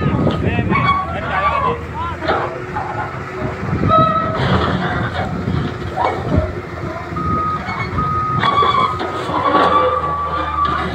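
Concrete slabs crack and crash as a wall is pushed down.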